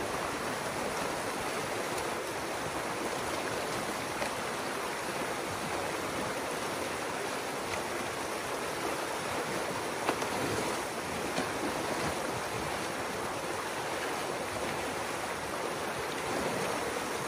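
A rake splashes and scrapes in shallow water.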